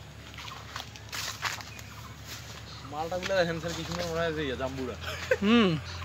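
Leaves rustle as branches are brushed aside.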